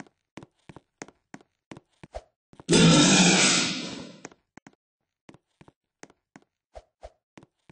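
Quick footsteps tap steadily on a hard floor.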